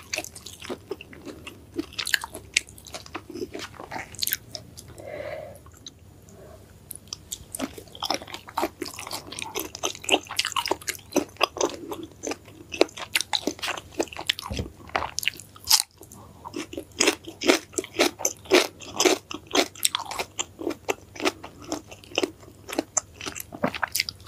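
A woman chews crunchy food with loud wet crunches close to a microphone.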